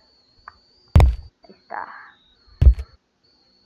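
A body thuds hard against a surface.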